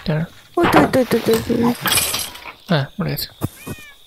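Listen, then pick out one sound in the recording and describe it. A sword strikes a skeleton with sharp thuds.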